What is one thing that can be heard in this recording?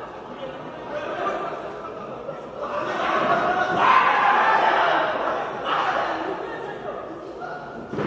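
A crowd of spectators cheers and shouts, swelling loudly at times.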